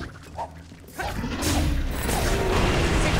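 A magical blast bursts with a loud, rushing roar.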